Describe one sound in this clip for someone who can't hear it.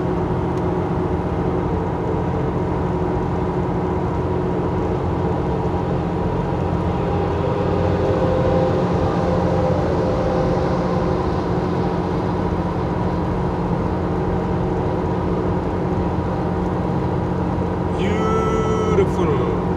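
Tyres roar steadily on a highway.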